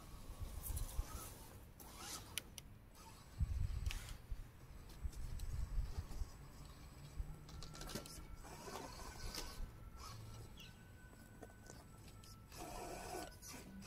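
A small toy car's electric motor whirs as it drives over grass.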